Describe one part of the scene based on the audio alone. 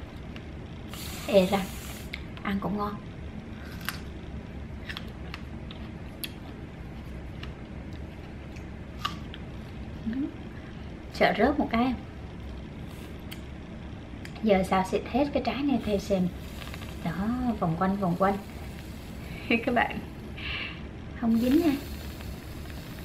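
Whipped cream hisses out of a spray can.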